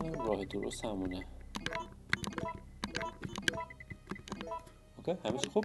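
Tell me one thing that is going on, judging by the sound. Menu selection beeps chime quickly, one after another.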